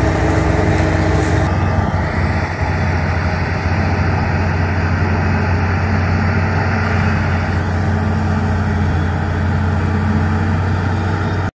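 A forage harvester's engine roars steadily up close.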